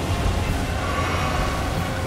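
Water splashes under a galloping horse.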